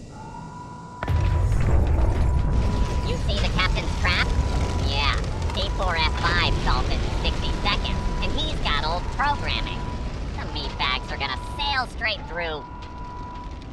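Fires crackle and roar nearby.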